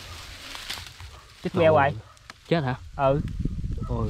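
Hands rustle through dry grass.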